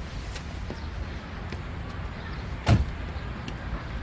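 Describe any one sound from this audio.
A car door clunks shut.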